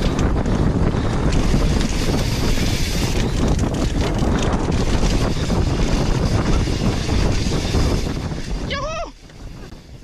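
Wind buffets loudly past the rider.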